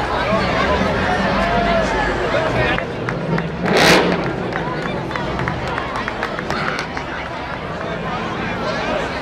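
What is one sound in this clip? A crowd chatters and children shout along a street outdoors.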